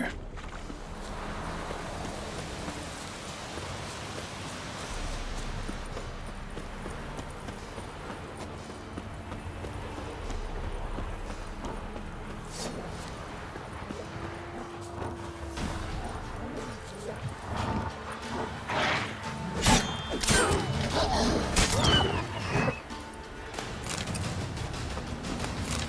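Footsteps run on a dirt path.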